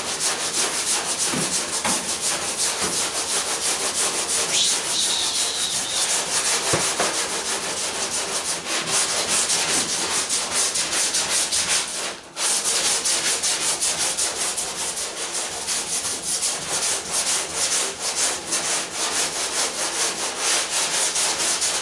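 A sanding block rasps back and forth over a primed car body panel.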